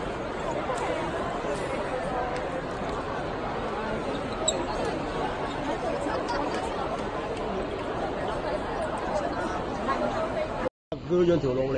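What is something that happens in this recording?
A large crowd murmurs and chatters in an echoing hall.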